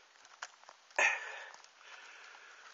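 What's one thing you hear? Moss and leaves rustle as a hand pulls up a mushroom close by.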